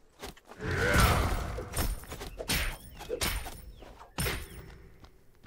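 Blows from a staff strike with sharp thuds.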